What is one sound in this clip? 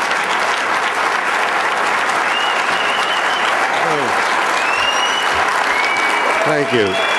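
A large crowd applauds loudly and steadily in a hall.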